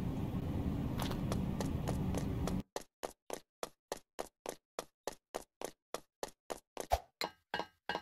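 Running footsteps clatter on a metal grating.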